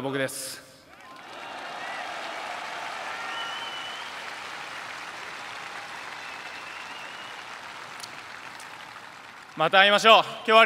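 A stadium crowd cheers in the distance.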